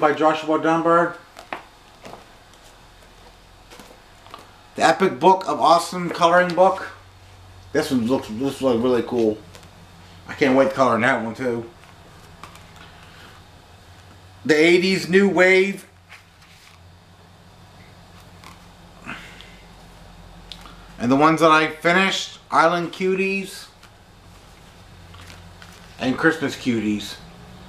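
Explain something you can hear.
A young man talks calmly and close by, in short bursts.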